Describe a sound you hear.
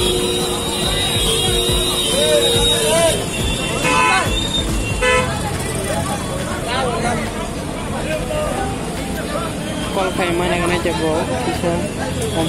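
Motor vehicles rumble and idle in busy street traffic.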